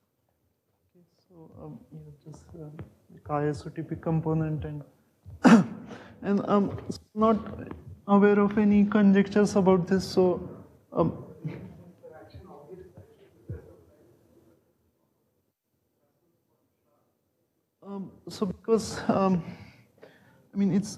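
A man lectures calmly in a room with some echo.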